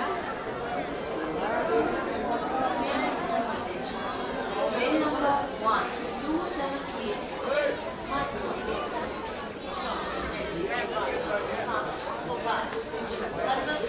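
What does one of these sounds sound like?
A large crowd chatters all around in a busy echoing hall.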